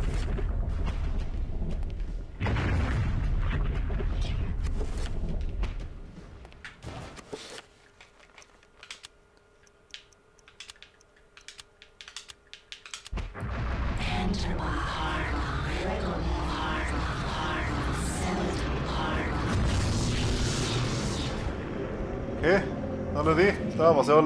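A low, droning rumble fills a large echoing hall.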